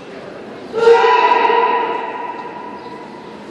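A young man gives a sharp shout that echoes through a large hall.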